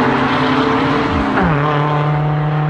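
An engine's pitch drops as a car passes by quickly.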